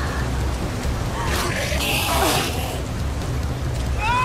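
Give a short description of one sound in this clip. Water splashes and sloshes as a swimmer surfaces.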